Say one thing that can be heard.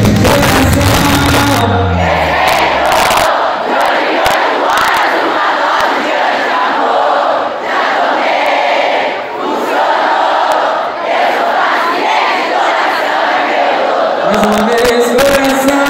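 A crowd cheers and screams loudly at a concert.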